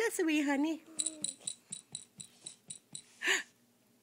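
A toy rattle jingles as it is shaken.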